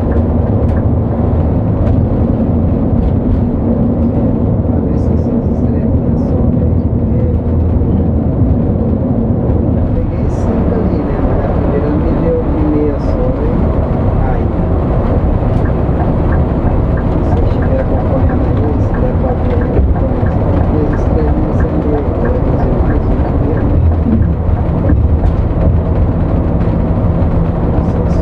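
A large engine hums low and steady.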